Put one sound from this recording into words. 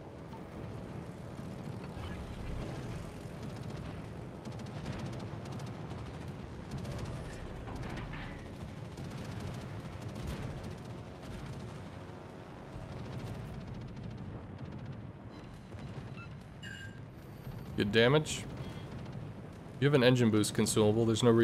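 Explosions and flak bursts boom and crack.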